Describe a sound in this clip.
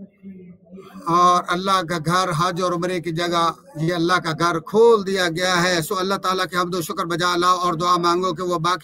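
A man recites loudly in a chanting voice through a microphone.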